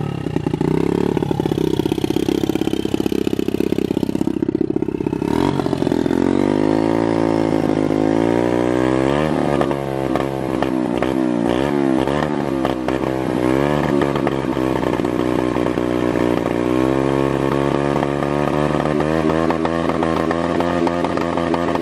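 A small motorbike engine runs close by, its pitch rising and falling.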